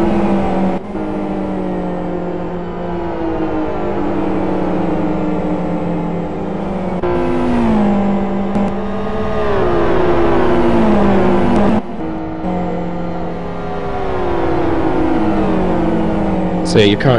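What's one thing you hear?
Racing car engines roar loudly and change pitch as they shift gears.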